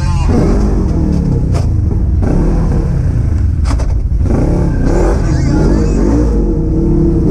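Tyres crunch and rumble over a dirt trail.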